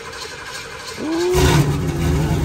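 A car engine cranks and starts up.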